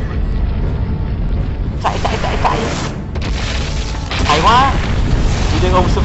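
An explosion roars with a deep rumble.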